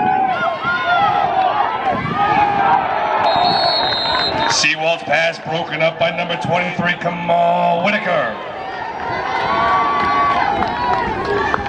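Young men shout and cheer close by.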